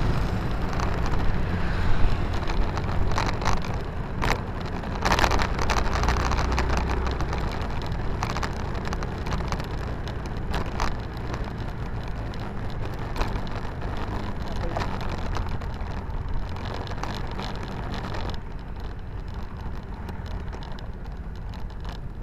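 A motorcycle engine rumbles steadily as it rides.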